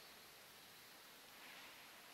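An elderly man speaks quietly through a microphone in a large echoing hall.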